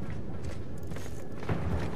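Footsteps crunch softly on dirt.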